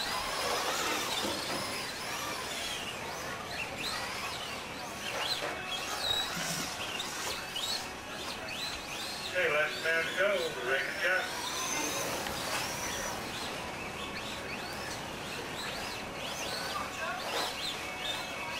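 A small electric motor whines at high pitch, rising and falling as a toy car races.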